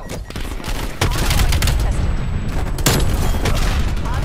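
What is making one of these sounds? Gunfire rattles in rapid bursts close by.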